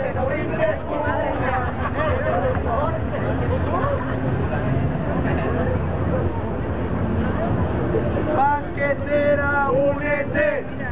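A crowd of marchers chatters and calls out outdoors.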